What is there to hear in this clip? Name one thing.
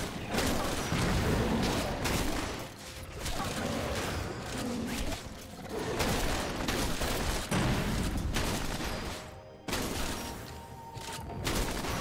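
Video game combat sounds of magical blasts and sword hits clash and whoosh.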